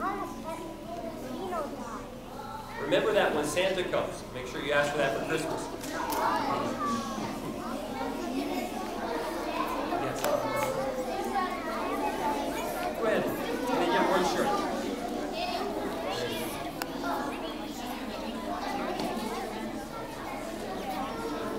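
Many young children chatter and call out excitedly.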